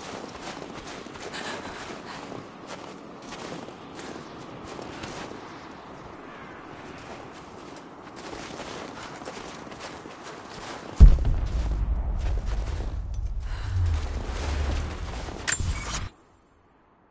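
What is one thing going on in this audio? Wind blows steadily through the trees.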